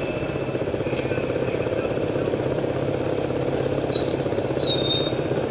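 Several small motorbike engines putter steadily close by.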